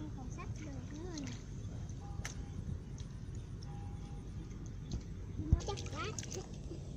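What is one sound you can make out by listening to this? Water splashes softly as hands dig in shallow mud.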